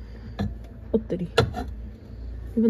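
A ceramic lid clinks onto a bowl.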